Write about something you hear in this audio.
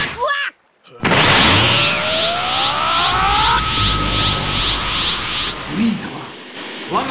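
A loud energy beam whooshes and roars.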